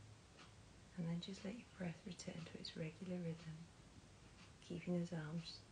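A woman speaks calmly and softly up close.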